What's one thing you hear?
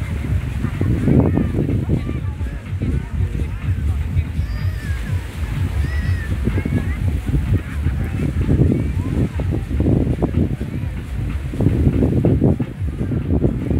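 Wind blows and rumbles against the microphone outdoors.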